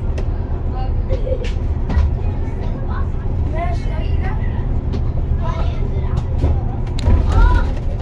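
Tyres roar steadily on a smooth road.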